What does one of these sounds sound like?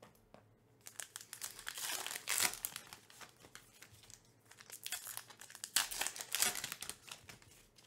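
Foil wrappers crinkle and rustle close by as packs are torn open.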